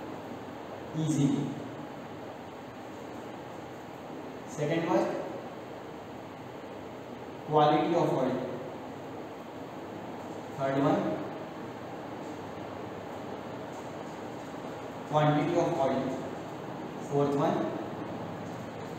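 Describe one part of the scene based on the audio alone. A man speaks in short phrases, pausing between them.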